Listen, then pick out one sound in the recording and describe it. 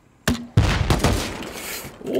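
Loud gunshots bang at close range.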